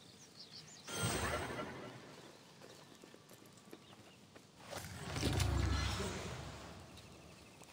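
Magical whooshing bursts sound as a spell is cast.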